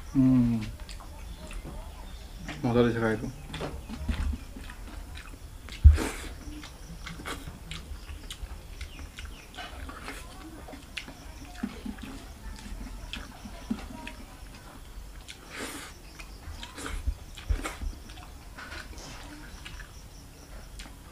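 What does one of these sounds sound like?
A young man chews food and smacks his lips close by.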